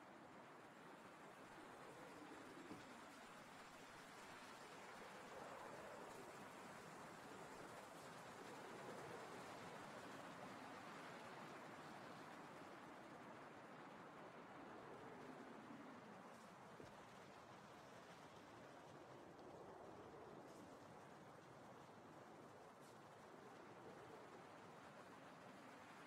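Leaves rustle softly as someone shifts inside a bush.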